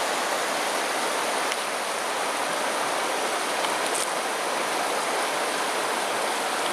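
A shallow stream flows and babbles steadily over rocks.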